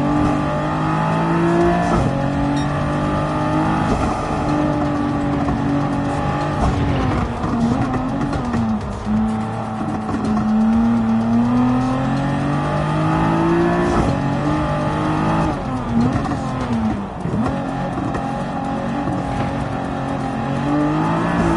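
A racing car engine revs hard, rising through the gears and dropping as it brakes.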